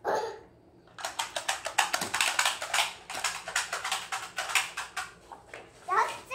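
Plastic toys clatter and click on a table.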